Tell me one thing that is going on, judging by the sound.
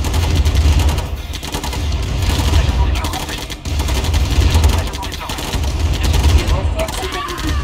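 Tank engines rumble low and steady.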